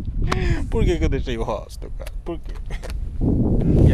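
A man talks cheerfully and close by, outdoors in wind.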